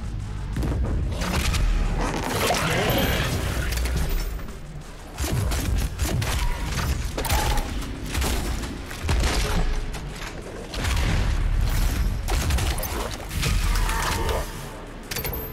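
Monsters roar and screech.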